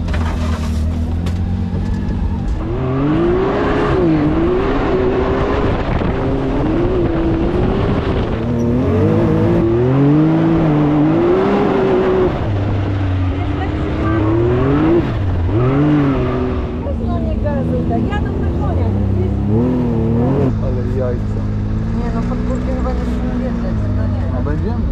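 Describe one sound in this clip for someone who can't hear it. Tyres crunch and spray over loose dirt and gravel.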